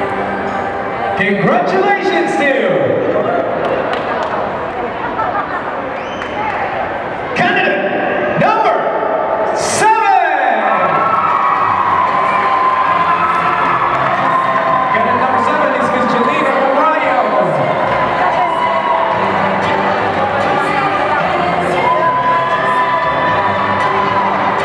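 A crowd murmurs and cheers in a busy, echoing hall.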